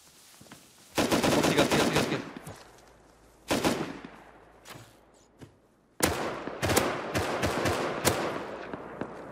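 A rifle fires rapid bursts of gunshots that echo outdoors.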